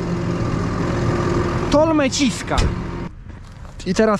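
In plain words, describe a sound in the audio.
A tractor engine drones close by.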